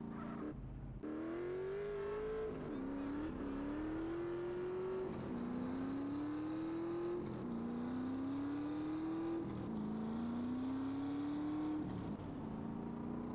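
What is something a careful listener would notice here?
A motorcycle engine revs up through the gears, rising and dropping in pitch with each shift.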